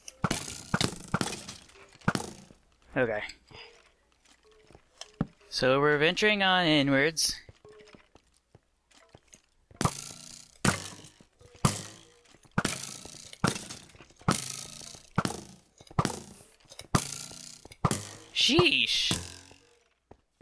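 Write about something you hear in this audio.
A bow repeatedly twangs as arrows are shot.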